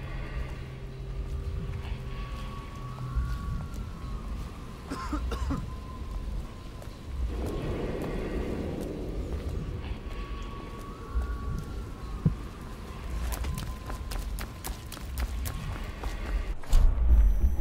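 Footsteps tread on stone pavement.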